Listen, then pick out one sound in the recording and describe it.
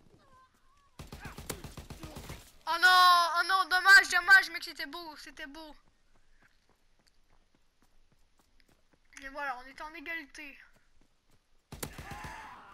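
A gun fires rapid bursts close by.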